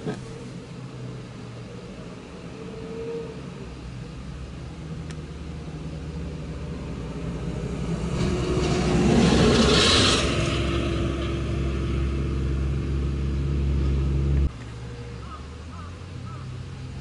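A truck engine rumbles as it drives slowly past.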